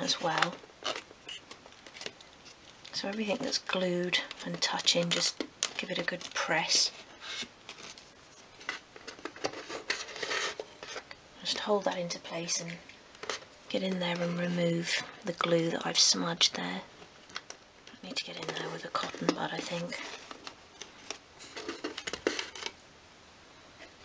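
Fingers tap and scrape against small wooden pieces.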